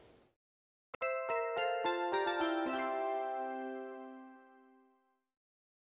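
A bright chime of notes rings out and fades.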